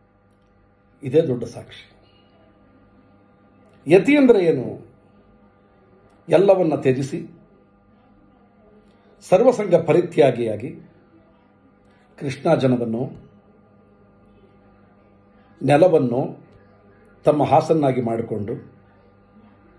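A middle-aged man speaks with animation in short bursts, close to a microphone.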